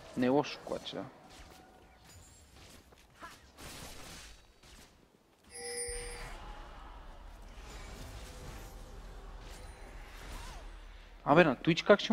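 Fantasy battle sound effects whoosh, zap and clash.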